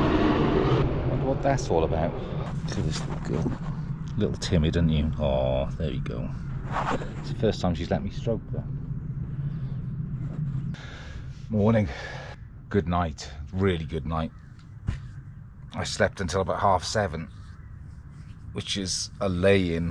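An older man talks calmly close to the microphone.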